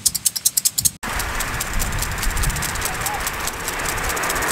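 Water sprays from sprinklers with a steady hiss.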